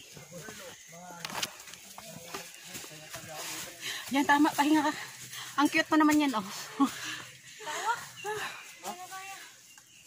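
Young women talk and call out with animation nearby, outdoors.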